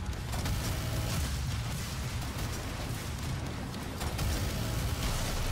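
Heavy guns fire in rapid bursts with booming blasts.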